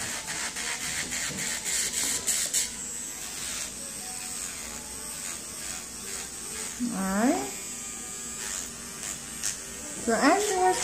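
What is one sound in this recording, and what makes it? An electric nail drill whirs with a steady high whine.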